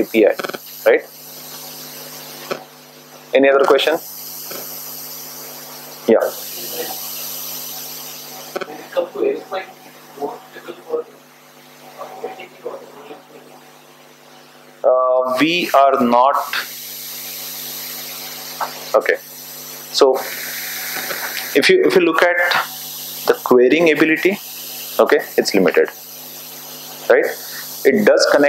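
A man speaks to an audience through a microphone in an echoing room.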